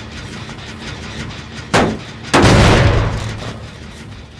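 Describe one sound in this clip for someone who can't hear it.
A metal engine clanks and bangs loudly as it is struck.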